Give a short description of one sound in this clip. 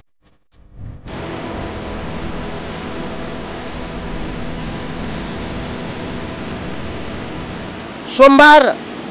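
A muddy river roars and rushes loudly.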